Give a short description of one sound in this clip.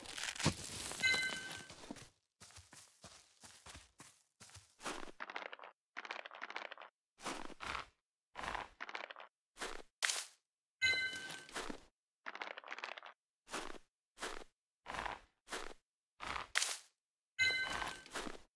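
A short bright chime rings out several times.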